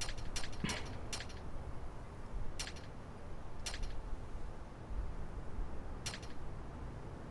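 Short menu clicks tick as a selection moves between items.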